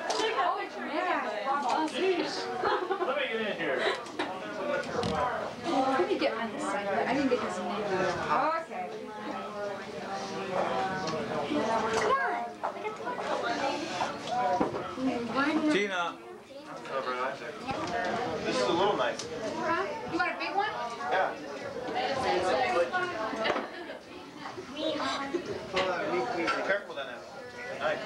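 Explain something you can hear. A group of young men and women talk and laugh together close by.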